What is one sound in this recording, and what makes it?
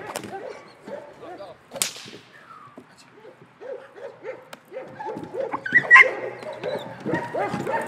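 A dog barks rapidly and fiercely outdoors.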